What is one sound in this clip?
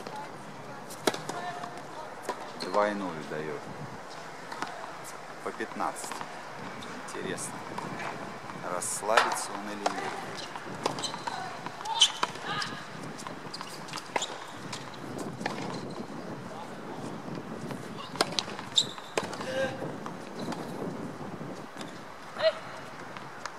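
Tennis balls thump off rackets outdoors, again and again.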